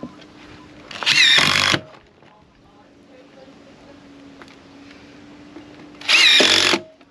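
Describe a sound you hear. A cordless drill whirs in short, loud bursts.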